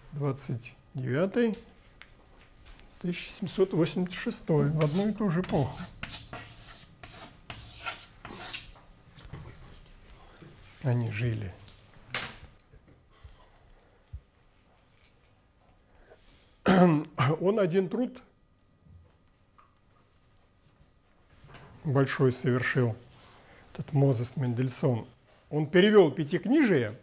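A middle-aged man speaks calmly through a clip-on microphone, with pauses.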